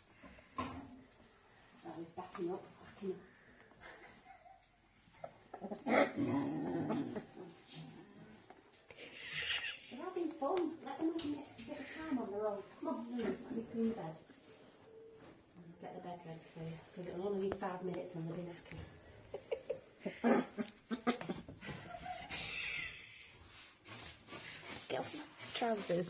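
Puppies scamper and scuffle on a hard floor.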